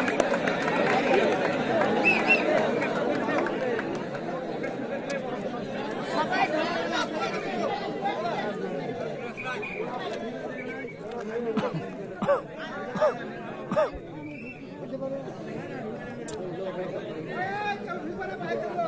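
A large outdoor crowd cheers and shouts.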